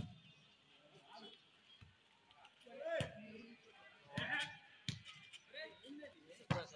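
Young men shout and call out during play outdoors.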